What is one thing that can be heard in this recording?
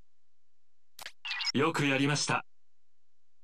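A burst of electronic chirping plays in a video game.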